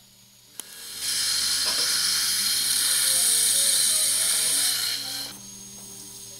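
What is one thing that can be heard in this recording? A dental drill whirs at high speed.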